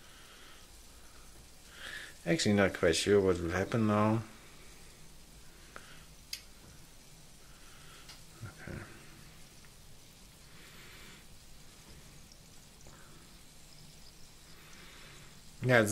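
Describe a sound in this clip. Candy sizzles faintly in a hot pan.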